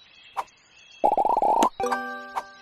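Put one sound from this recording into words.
A rapid run of pops and clatters sounds as a tall stack breaks apart.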